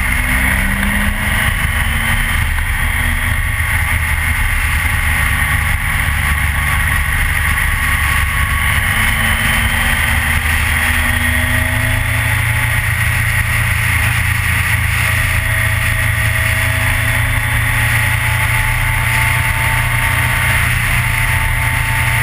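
A motorcycle engine roars steadily up close.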